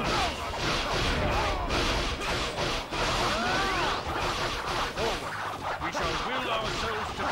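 A dense roar of battle noise runs throughout.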